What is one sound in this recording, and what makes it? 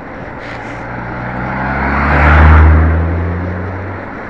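A small car drives past close by, its engine rising and then fading.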